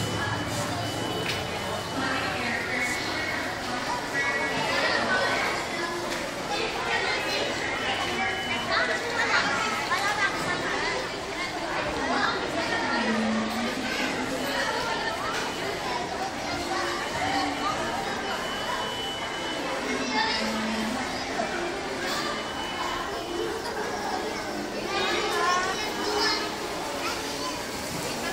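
A murmur of a crowd fills a large echoing hall.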